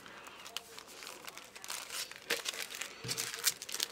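A plastic sleeve crinkles.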